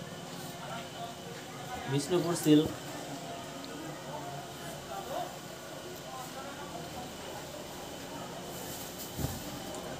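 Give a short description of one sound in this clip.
Fabric rustles softly as hands unfold and smooth a cloth.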